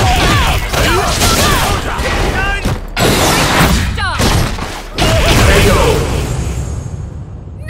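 Fighting game hits land with sharp, punchy thuds.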